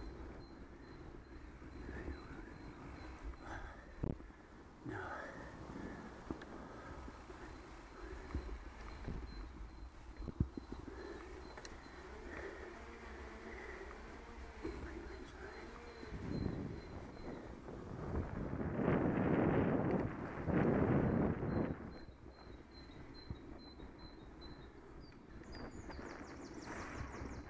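Bicycle tyres roll steadily over a smooth path.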